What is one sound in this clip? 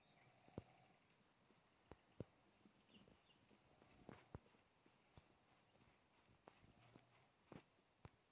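Footsteps crunch on dry grass.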